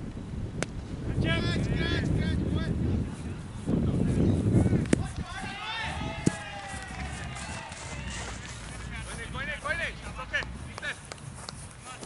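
Men call out and shout to each other outdoors.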